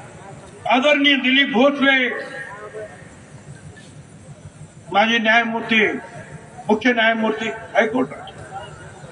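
An elderly man speaks forcefully into a microphone over loudspeakers, his voice echoing outdoors.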